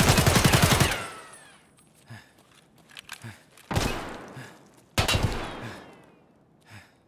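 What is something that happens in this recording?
An automatic rifle fires rapid bursts that echo and fade.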